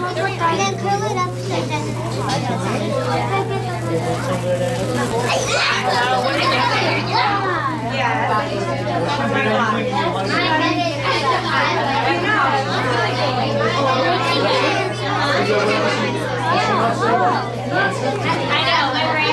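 Many children chatter and call out all around in a busy room.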